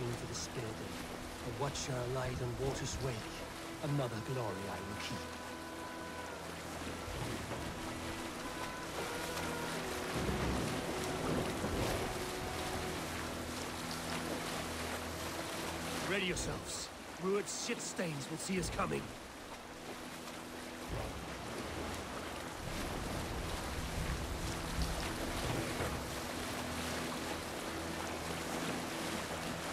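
Waves wash and splash against a wooden boat.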